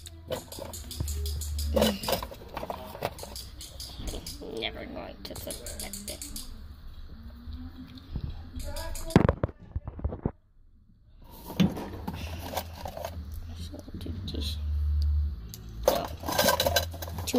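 Small plastic toys click and rattle as a hand handles them.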